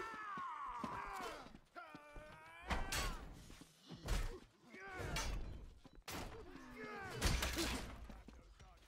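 Steel blades clash and strike hard.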